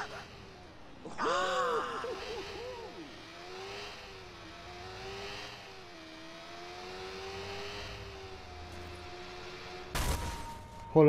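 A motorbike engine hums and revs as it rides along.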